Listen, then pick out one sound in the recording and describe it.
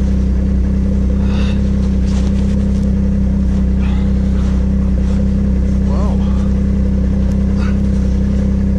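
A snowmobile engine idles with a steady low drone.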